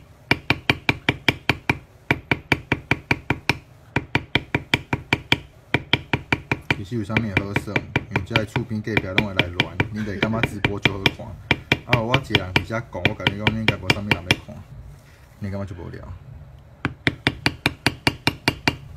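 A mallet taps a metal stamping tool into leather in quick, steady blows.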